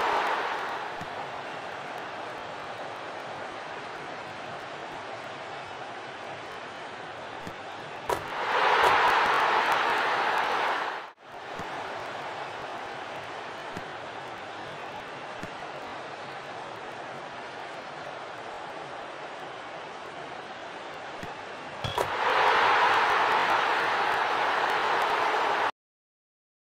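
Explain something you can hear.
A large stadium crowd roars steadily, swelling into loud cheers twice.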